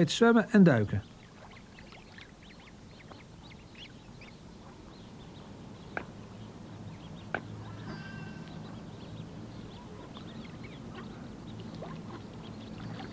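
Water bird chicks peep softly.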